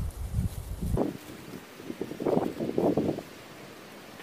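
Dry leafy fabric rustles and swishes.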